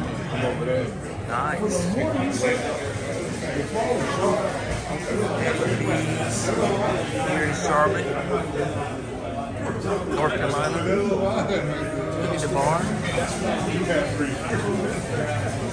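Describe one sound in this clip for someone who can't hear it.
A crowd of men and women chatter all around in a busy room.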